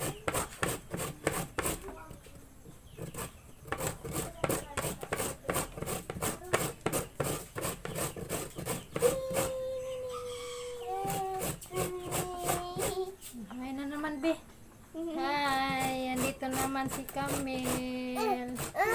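A blade scrapes and shreds firm fruit in quick, rhythmic strokes.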